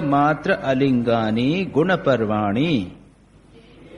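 An elderly man chants in a steady, sung voice through a microphone.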